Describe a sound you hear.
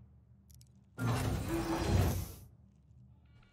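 A heavy mechanical door slides open with a loud whoosh.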